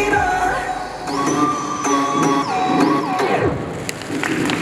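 Loud pop music plays through loudspeakers and stops abruptly.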